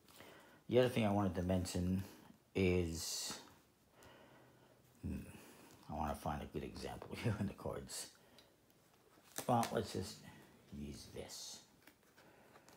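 Playing cards slap softly onto a cloth.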